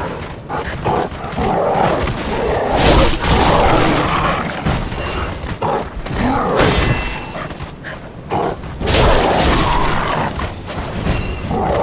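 A sword slashes and strikes flesh.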